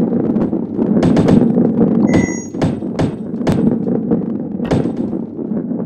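Sharp knocks sound as balls bump into each other.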